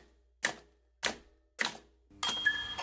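Typewriter keys strike in a few sharp clacks.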